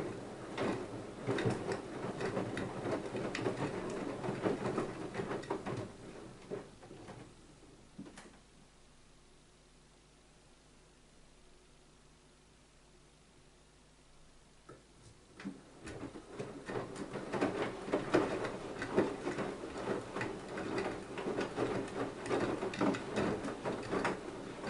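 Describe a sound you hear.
Water and laundry slosh and splash inside a turning washing machine drum.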